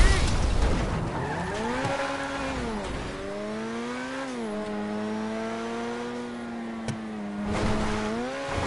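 A car engine revs and hums steadily, rising and falling in pitch.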